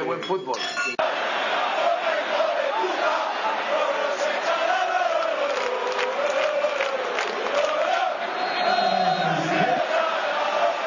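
A stadium crowd chants loudly.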